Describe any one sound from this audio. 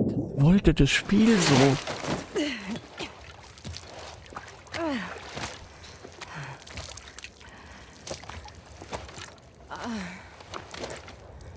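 A young woman groans and gasps in pain.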